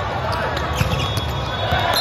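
A volleyball is spiked with a sharp slap.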